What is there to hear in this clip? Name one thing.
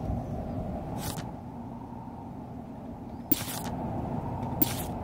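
Soft interface clicks sound as menu pages turn.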